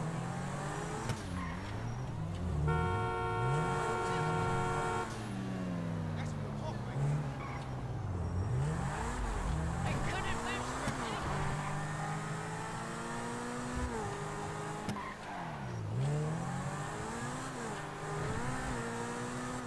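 A sports car engine revs and roars, rising and falling in pitch as it accelerates and shifts gears.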